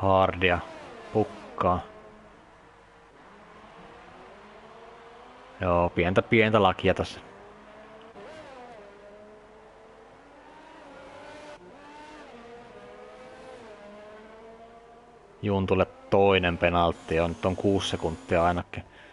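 A racing car engine whines and shifts pitch as it speeds along a track.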